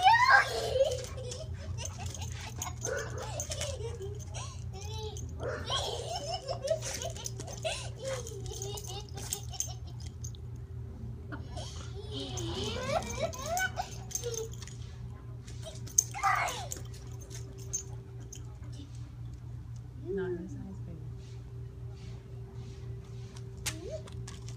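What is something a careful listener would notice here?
A young girl talks and squeals with animation.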